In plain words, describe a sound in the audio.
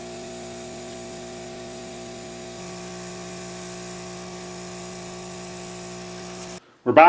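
Solder sizzles faintly under a hot soldering iron.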